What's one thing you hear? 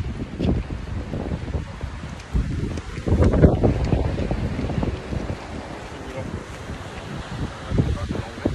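Wind blusters loudly into a nearby microphone outdoors.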